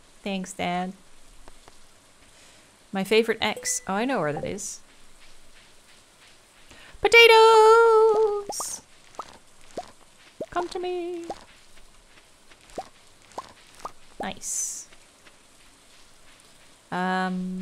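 A young woman speaks casually and with animation, close to a microphone.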